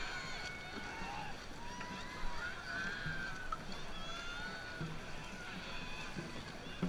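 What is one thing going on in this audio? Paddles splash through water in a steady rhythm.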